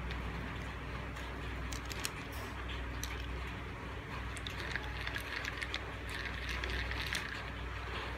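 Plastic fishing reel parts click and rattle as they are handled close by.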